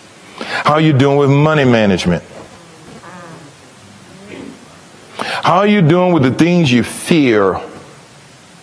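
A middle-aged man speaks loudly and with animation, close by.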